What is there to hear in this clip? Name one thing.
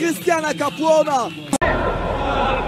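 Men shout and cheer close by.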